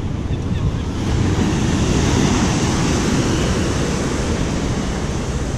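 Waves break and wash onto the shore below.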